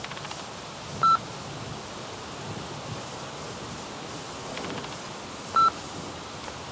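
A wall button gives a short, sharp beep twice.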